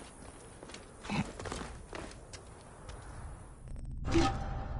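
Footsteps crunch quickly over sandy ground.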